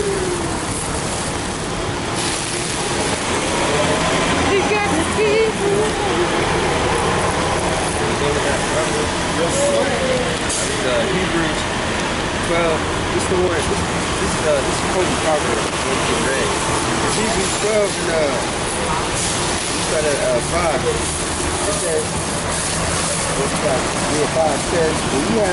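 Rain patters on an umbrella close by.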